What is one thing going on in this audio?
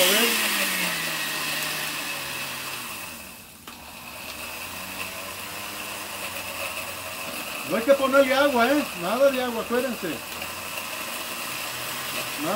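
A blender whirs loudly.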